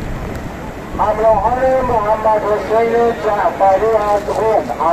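A man chants loudly in a steady melody.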